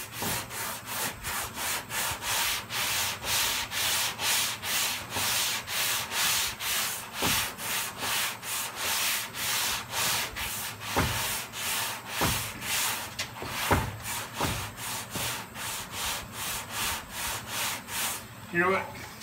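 A sanding block scrapes back and forth over metal in quick, steady strokes.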